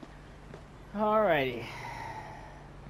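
A woman cries out briefly.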